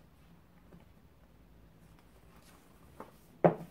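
A book scrapes as it slides off a shelf.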